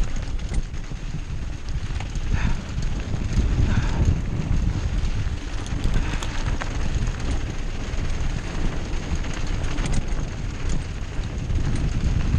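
A mountain bike rattles and clicks over bumps.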